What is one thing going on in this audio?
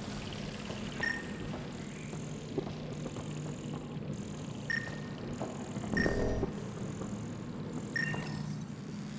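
A scanner gives short, bright beeps.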